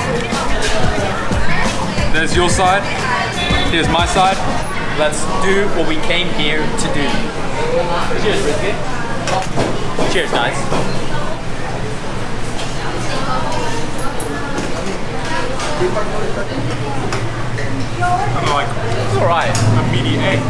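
A busy crowd chatters in the background.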